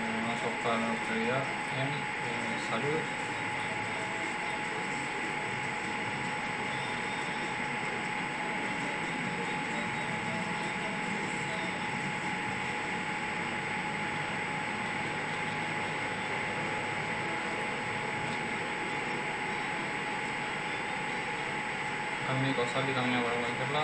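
A young man talks casually and close to a microphone.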